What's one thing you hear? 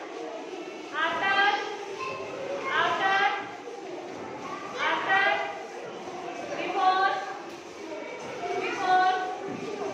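Young children chant together in loud, sing-song bursts.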